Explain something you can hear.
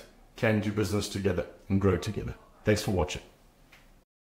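A man speaks calmly and clearly into a clip-on microphone, close up.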